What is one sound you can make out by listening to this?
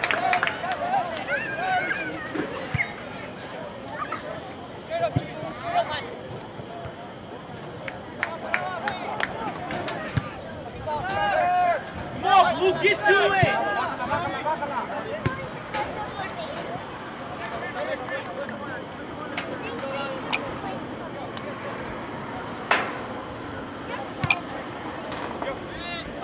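A ball is kicked with dull thumps.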